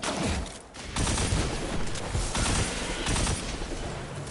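Gunfire bursts out in rapid shots.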